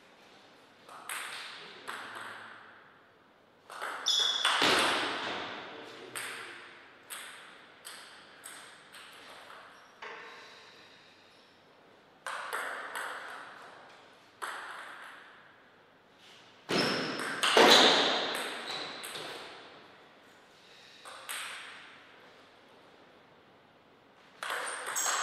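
A table tennis ball clicks sharply back and forth off paddles and the table in an echoing hall.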